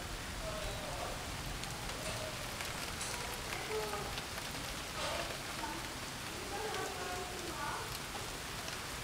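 A teenage boy speaks quietly nearby.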